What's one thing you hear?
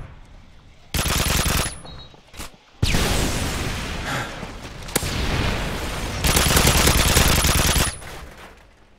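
A machine gun fires in loud rapid bursts.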